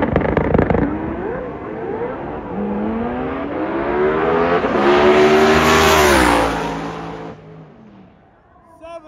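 A drag racing car's engine roars loudly as it launches and accelerates away down the track.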